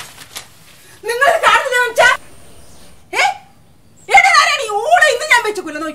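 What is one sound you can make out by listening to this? An elderly woman shouts angrily and loudly nearby.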